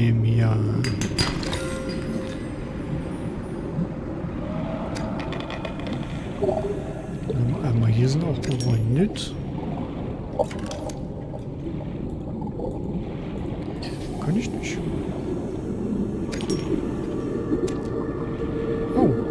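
Water rumbles low and steady all around, as if heard from underwater.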